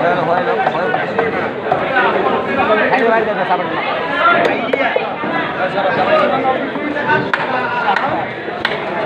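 A crowd of men talk loudly and over one another close by.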